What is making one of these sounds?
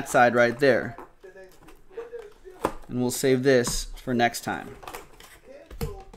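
Cardboard packs rustle and tap as hands handle a box.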